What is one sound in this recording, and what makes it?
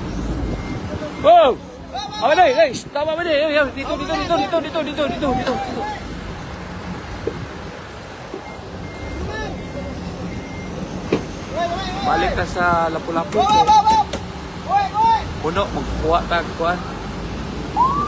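Men and women talk and shout excitedly nearby outdoors.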